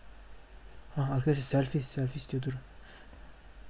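A young man speaks briefly into a headset microphone.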